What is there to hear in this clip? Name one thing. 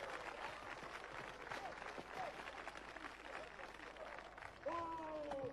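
A crowd of men claps outdoors.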